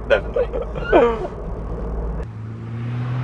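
Two men laugh inside a car.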